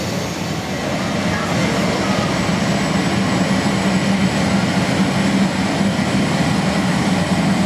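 A jet engine roars steadily as a plane speeds down a runway.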